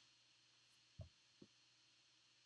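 A hard plastic card holder clicks against a metal case.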